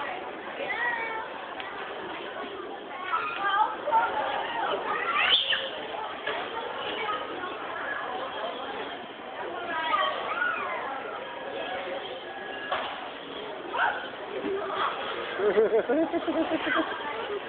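Young children shout and chatter excitedly nearby, in a noisy indoor space.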